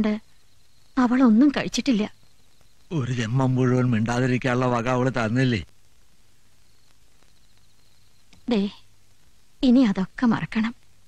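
An elderly man speaks slowly and gravely, close by.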